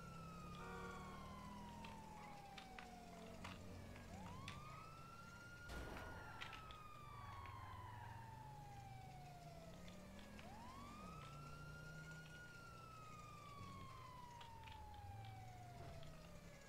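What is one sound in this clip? A siren wails, rising and falling slowly.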